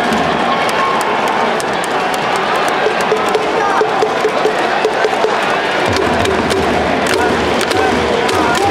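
Noisemakers clap rhythmically in a stadium crowd.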